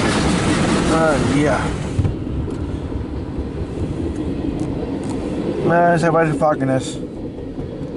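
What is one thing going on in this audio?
A train horn blares in loud blasts.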